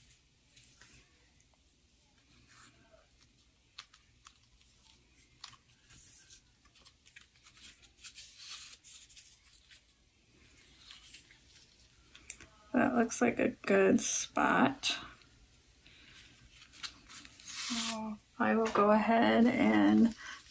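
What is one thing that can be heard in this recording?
Paper rustles and crinkles in hands.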